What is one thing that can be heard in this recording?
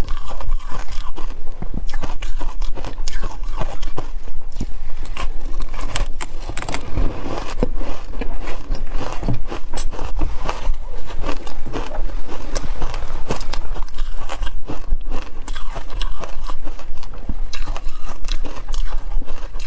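A young woman chews crumbly food close to a microphone.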